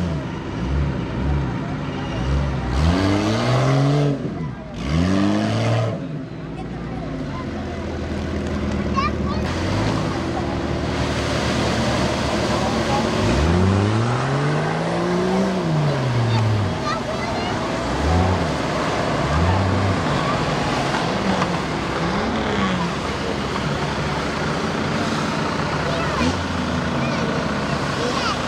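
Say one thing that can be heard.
An engine revs hard and falls away again and again, up close.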